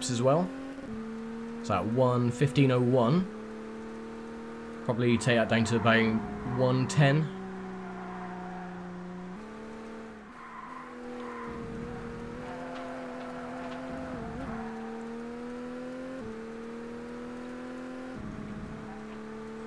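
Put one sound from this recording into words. A racing car engine drones steadily, rising and falling in pitch as the car speeds up and slows.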